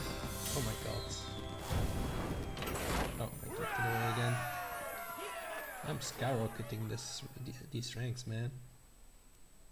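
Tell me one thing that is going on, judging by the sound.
A triumphant fanfare with sparkling chimes plays loudly.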